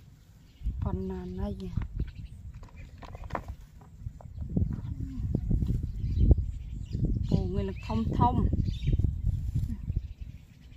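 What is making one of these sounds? Leaves and grass rustle as hands push through a low bush.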